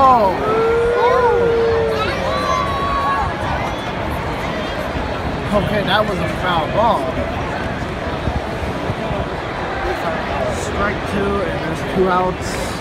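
People in a crowd shout and call out.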